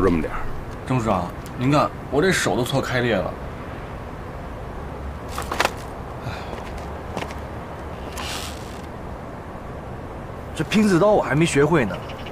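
A young man speaks casually nearby.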